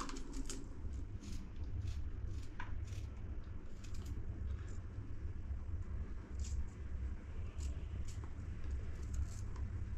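Onion layers crackle as they are peeled and snapped by hand.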